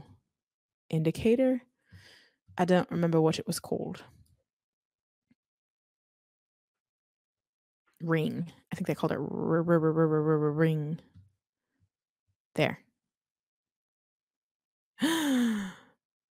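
A woman talks casually into a close microphone, with pauses.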